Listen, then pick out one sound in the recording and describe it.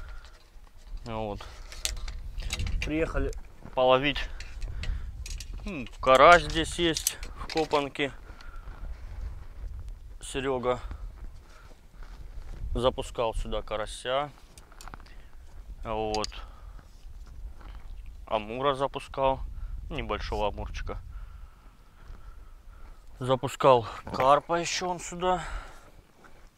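A man talks in short bursts nearby, outdoors.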